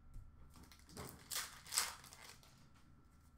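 Plastic card packs rustle and crinkle.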